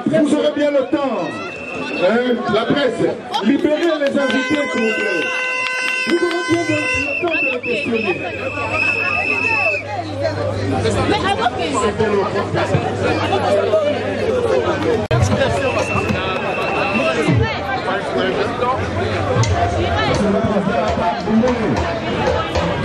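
A dense crowd of men and women talk and shout excitedly all around, close by.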